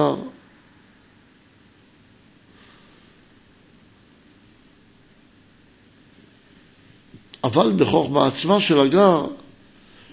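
A man reads aloud in a steady, chanting voice into a microphone.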